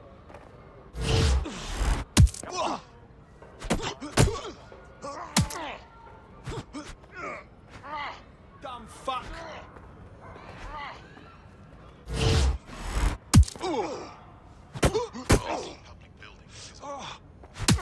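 Punches land with heavy thuds in a fistfight.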